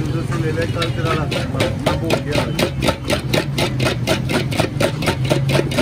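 A ladle beats liquid rapidly in a metal pot, making a quick rhythmic splashing.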